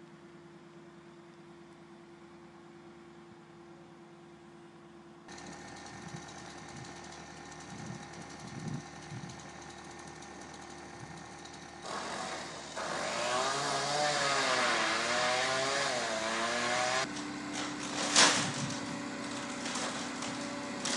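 A hydraulic excavator's diesel engine runs.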